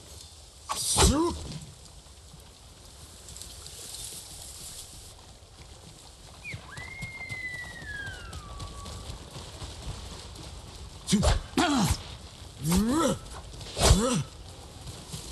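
A deer gives sharp, rising barks.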